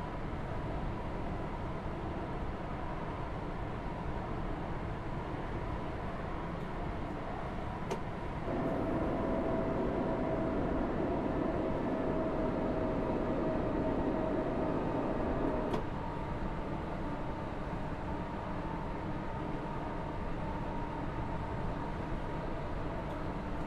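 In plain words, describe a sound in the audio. A train's motor hums with a steady tone.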